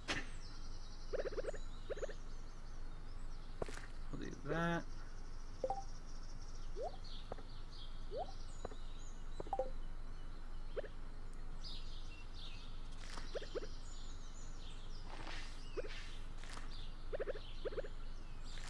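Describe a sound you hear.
Short game sound effects blip and chirp now and then.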